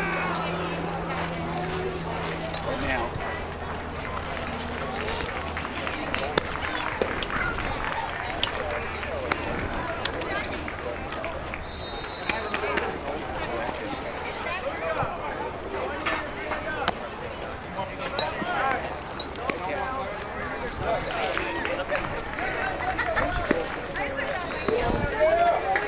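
Several people talk and call out nearby, outdoors.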